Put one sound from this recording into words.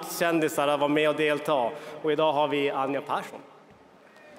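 A man speaks into a microphone over loudspeakers in a large echoing hall.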